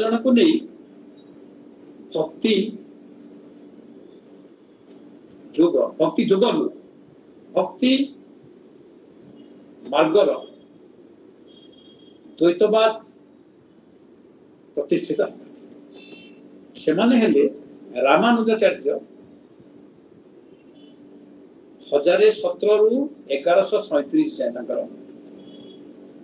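An elderly man speaks slowly in bursts over an online call.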